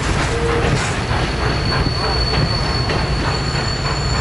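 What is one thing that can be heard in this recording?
Metal wheels squeal faintly against the rails.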